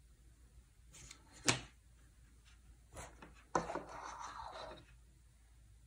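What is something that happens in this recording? A plastic switch on a cable clicks.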